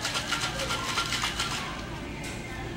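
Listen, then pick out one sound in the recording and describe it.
Ice rattles hard inside a cocktail shaker.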